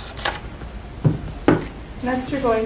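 Scissors are set down on a table with a clack.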